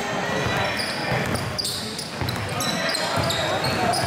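A basketball bounces on a wooden floor as a boy dribbles.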